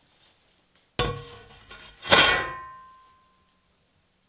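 A metal saw blade clangs as it drops onto a hard surface and rings out.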